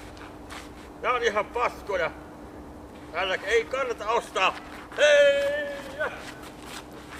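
A young man shouts and sings loudly outdoors, a short way off.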